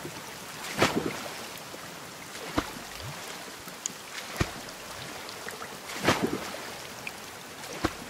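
A paddle splashes into water at a steady pace.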